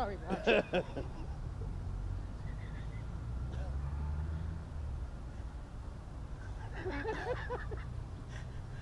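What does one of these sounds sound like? Men talk casually a short way off, outdoors.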